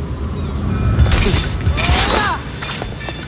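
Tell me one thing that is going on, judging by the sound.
A heavy body lands on wet pavement with a thud.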